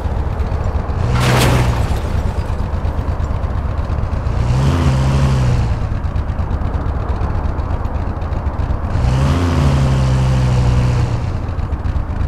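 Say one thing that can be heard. A car engine revs up and settles in short bursts.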